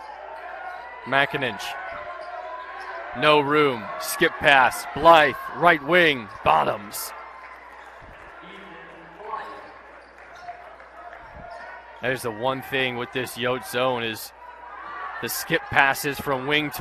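Basketball shoes squeak sharply on a wooden court.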